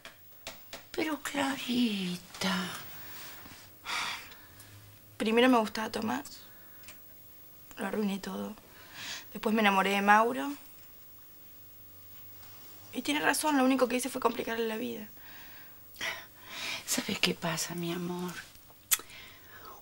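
An elderly woman speaks quietly and earnestly, close by.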